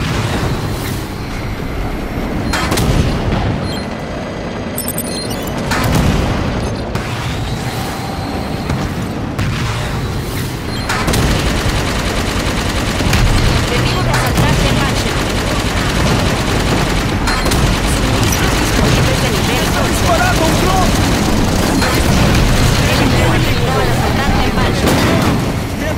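A hovering vehicle's engine hums and whooshes steadily.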